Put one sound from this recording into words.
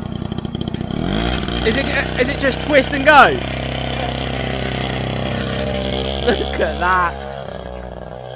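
A small motorbike engine revs up loudly and roars.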